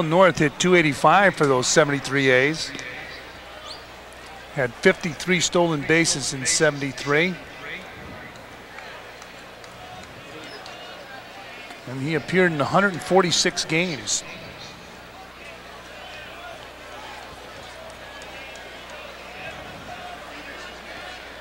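A crowd murmurs faintly in the stands.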